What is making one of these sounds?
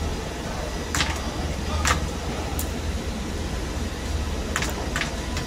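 Small plastic clicks sound as hands handle wiring close by.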